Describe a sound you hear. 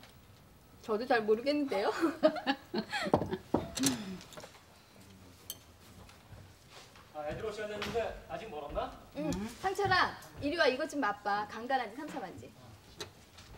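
An older woman talks nearby.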